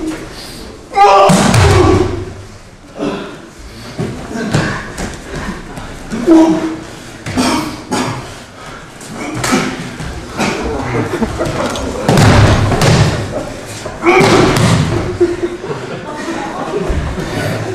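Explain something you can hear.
Bodies thud heavily onto a mat.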